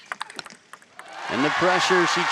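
A crowd in an indoor arena cheers and applauds.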